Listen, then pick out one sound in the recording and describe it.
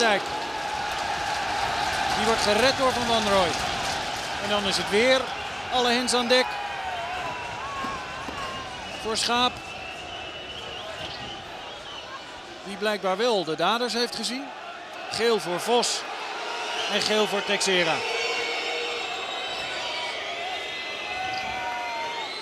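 A large crowd roars and chants in an open stadium.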